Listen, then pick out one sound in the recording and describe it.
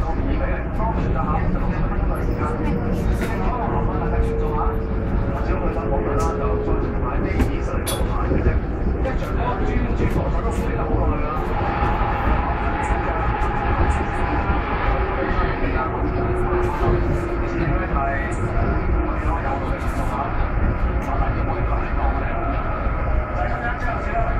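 Wheels squeal and rattle on the rails.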